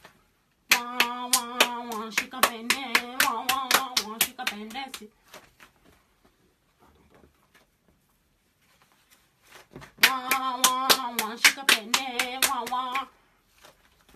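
A young woman sings a chant nearby.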